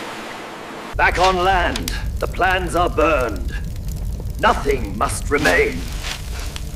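A man speaks with emotion nearby.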